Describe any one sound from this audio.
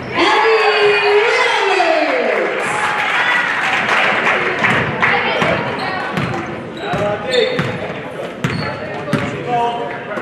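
A crowd cheers and shouts in an echoing gym.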